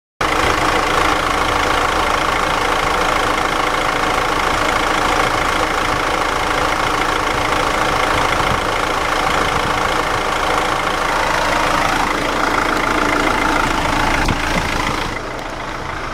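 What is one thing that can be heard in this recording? A car engine idles loudly and steadily close by.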